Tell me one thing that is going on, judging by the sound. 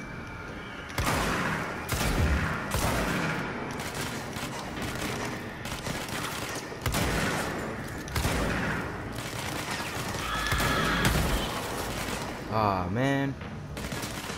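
Explosions and gunfire boom and crackle.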